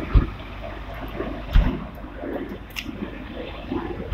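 A trailer side door swings open with a click.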